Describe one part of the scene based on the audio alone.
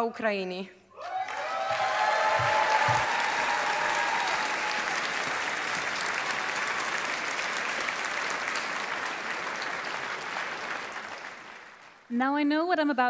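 A large audience applauds and cheers in an echoing hall.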